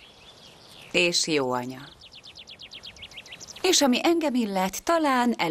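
A young woman answers softly and close by.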